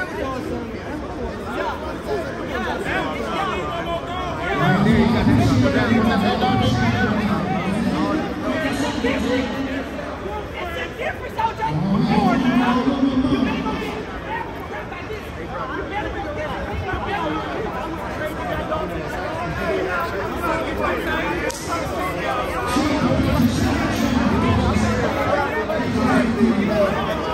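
A large crowd chatters and shouts excitedly close by.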